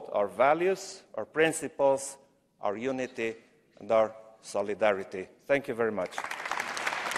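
A middle-aged man speaks firmly through a microphone in a large echoing hall.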